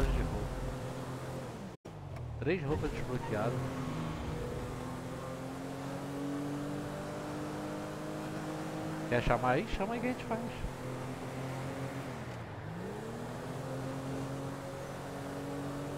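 A car engine hums steadily, rising and dropping in pitch as it shifts gears.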